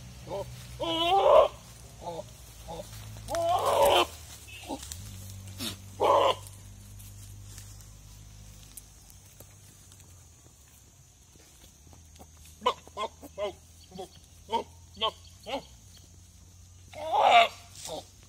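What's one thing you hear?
A goat bleats loudly nearby, several times.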